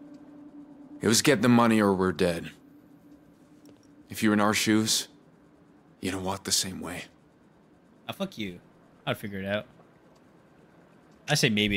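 A young man speaks in a tense, low voice nearby.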